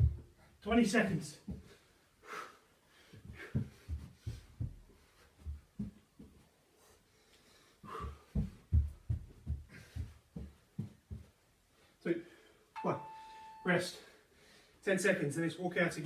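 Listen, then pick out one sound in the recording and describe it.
A man breathes hard from exertion.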